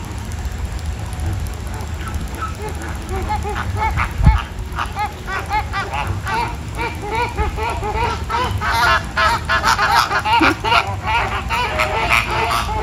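A flock of flamingos honks and chatters, growing louder and busier.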